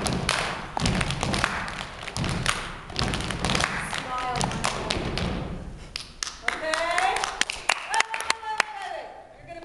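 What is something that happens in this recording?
Feet stomp in rhythm on a wooden stage in an echoing hall.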